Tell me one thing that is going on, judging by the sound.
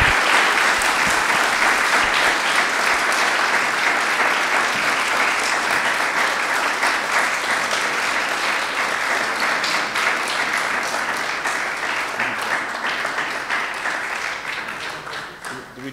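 An audience applauds in a large room, slowly fading.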